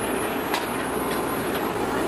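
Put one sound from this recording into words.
A gas flame roars steadily.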